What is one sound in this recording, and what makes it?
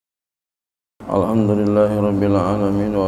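A middle-aged man recites in a drawn-out, melodic voice through a microphone.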